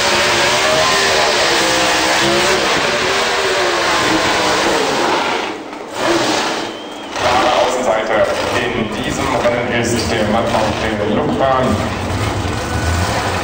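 A race car engine roars loudly, revving up and down.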